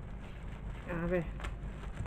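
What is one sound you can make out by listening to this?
Scissors snip.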